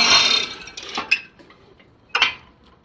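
Metal clanks as a block-making machine is handled.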